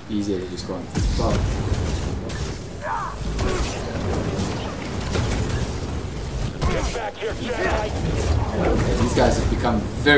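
Lightsabers hum and clash with sharp electric crackles.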